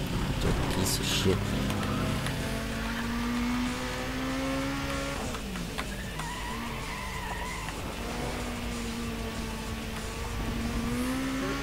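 Tyres screech while sliding through corners.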